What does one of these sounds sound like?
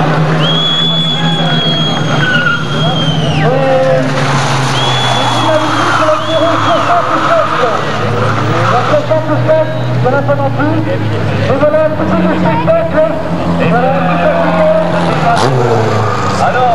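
A rally car engine revs hard nearby.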